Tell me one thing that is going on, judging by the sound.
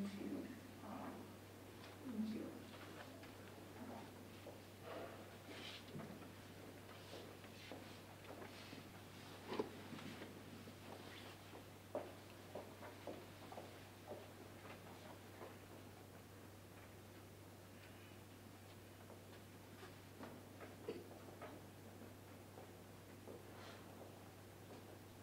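Audience members murmur and shift quietly in a room.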